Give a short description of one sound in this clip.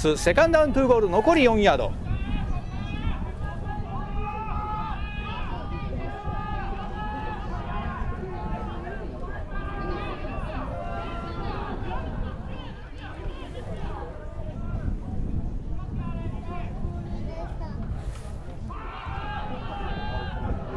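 Nearby spectators chatter and call out.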